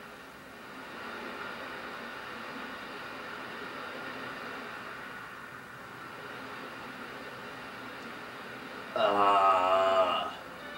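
Music and sound effects play from a television speaker.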